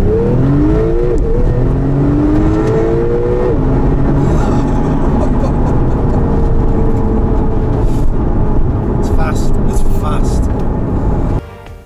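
A car engine roars and revs up through the gears.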